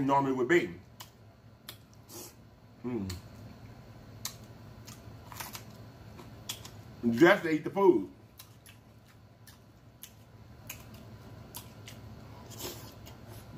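A man chews food wetly close to a microphone.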